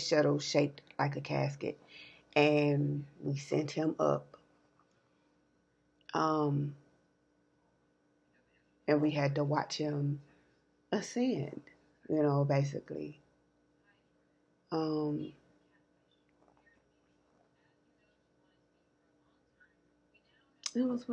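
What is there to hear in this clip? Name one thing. A woman speaks calmly and close to a microphone, in short bursts with pauses.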